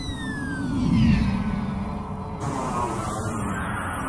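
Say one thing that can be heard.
A flying saucer hums as it glides past.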